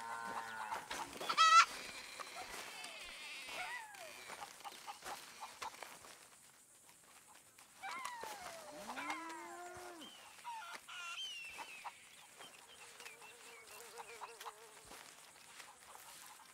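Chickens cluck and squawk nearby.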